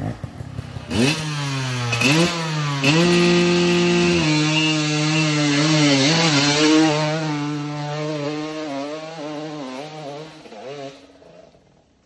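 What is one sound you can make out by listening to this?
A dirt bike engine revs loudly, rising and falling in pitch.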